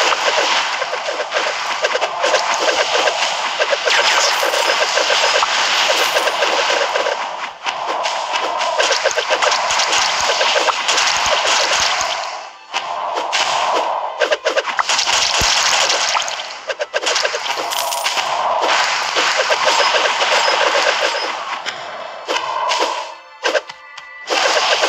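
Rapid electronic shooting and hit sounds crackle and burst without pause.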